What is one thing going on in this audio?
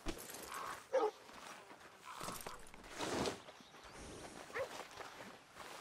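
A horse snorts and whinnies nearby.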